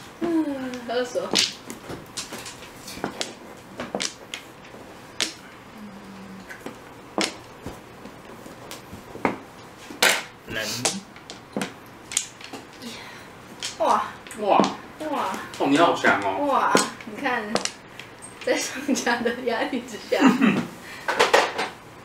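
Mahjong tiles clack and click against each other on a table.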